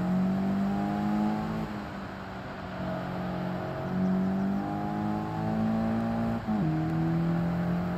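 A racing car engine roars steadily, with its pitch shifting as it changes gear.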